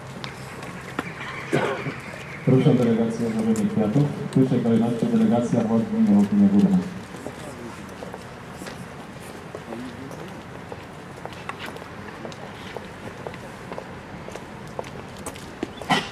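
Footsteps shuffle on paving stones outdoors.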